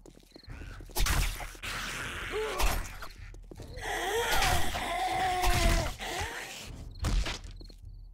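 A knife slashes and thuds into flesh.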